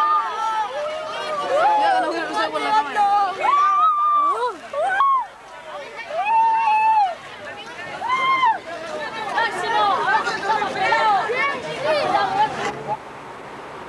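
Young boys chatter and shout excitedly close by.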